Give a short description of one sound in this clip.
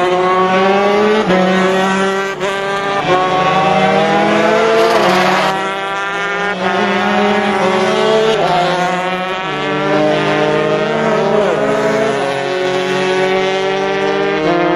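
Racing motorcycle engines scream at high revs, shifting gears up and down.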